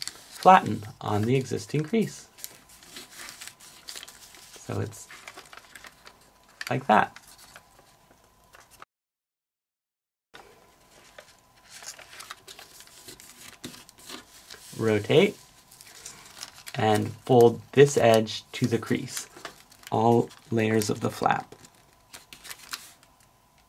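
Paper rustles and creases softly as it is folded.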